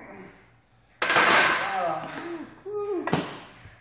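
A metal barbell clanks into its rack.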